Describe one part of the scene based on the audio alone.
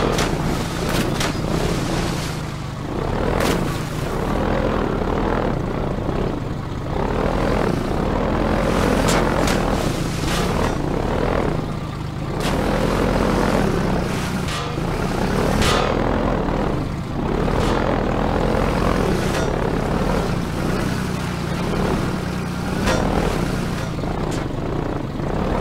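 Metal clanks and knocks against a boat's frame.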